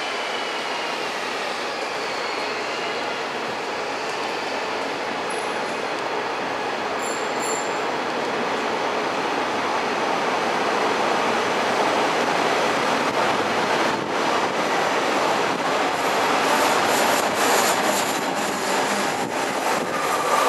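A train rumbles slowly into a station and grows louder as it passes close by.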